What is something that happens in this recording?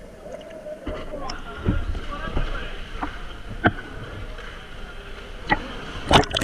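Water laps and splashes at the surface of an echoing pool.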